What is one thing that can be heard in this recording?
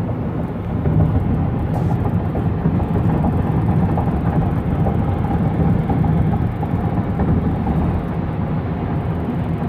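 A car drives along a highway with a steady low road rumble, heard from inside a moving vehicle.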